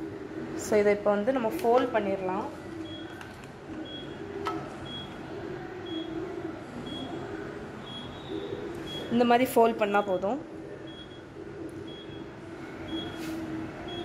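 Hands press and fold soft pastry dough.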